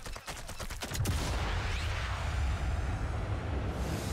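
An explosion booms with a deep roar.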